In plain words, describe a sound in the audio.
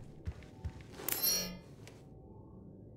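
An electronic panel beeps when pressed.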